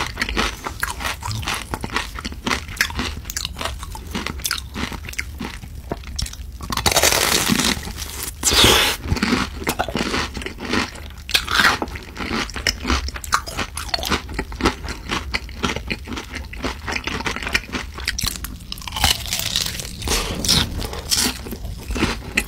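A man chews crunchy fried food loudly and close up.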